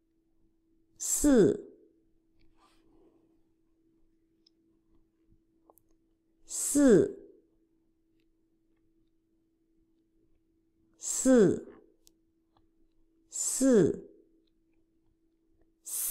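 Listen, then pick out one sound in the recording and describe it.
A middle-aged woman says single words slowly and clearly, heard through an online call.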